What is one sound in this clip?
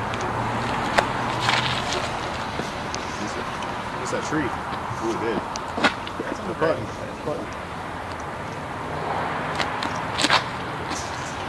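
A man's feet scuff sharply on pavement as he throws.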